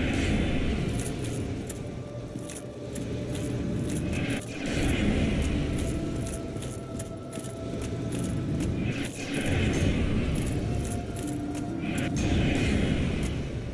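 A sword swings with sharp swishes.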